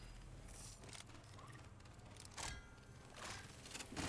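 A short chime sounds as an item is picked up.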